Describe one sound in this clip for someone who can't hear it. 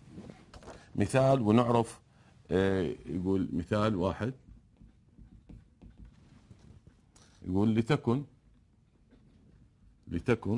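A middle-aged man speaks calmly into a close microphone, with pauses.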